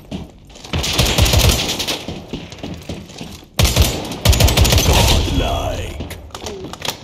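Gunfire bursts loudly from a game.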